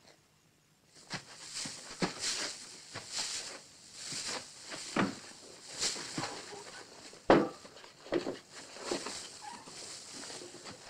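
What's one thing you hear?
Straw rustles and crackles as it is pulled aside.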